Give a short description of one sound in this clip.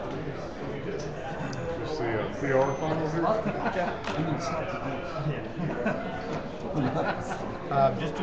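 Dice rattle in a leather cup.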